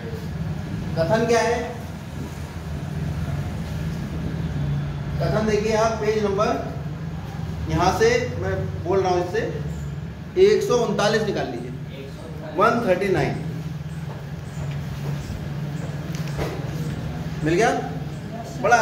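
A man speaks clearly in a teaching manner, close by.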